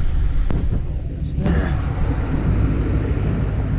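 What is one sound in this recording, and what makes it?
Tyres crunch and roll over loose sand.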